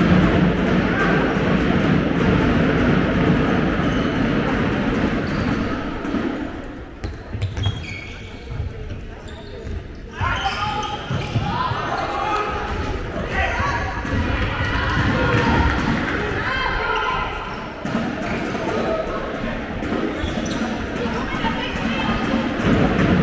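A ball bounces on the court floor.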